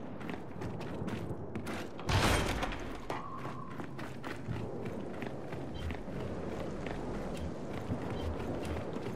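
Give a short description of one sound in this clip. Heavy footsteps clatter quickly on a hard floor.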